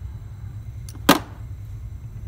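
Pliers clack down onto a hard surface.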